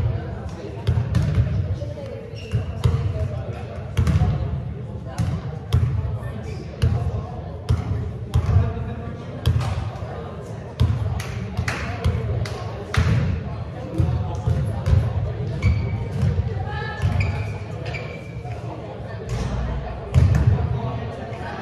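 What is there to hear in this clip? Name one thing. Balls bounce and thud on a hard floor, echoing around a large hall.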